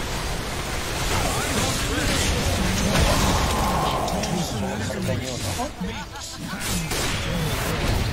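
A young man talks excitedly close to a microphone.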